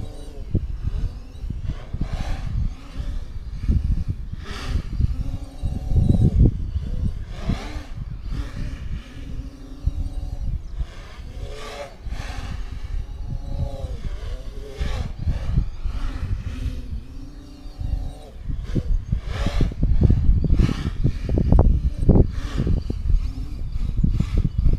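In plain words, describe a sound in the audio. Wind buffets and rumbles across open ground outdoors.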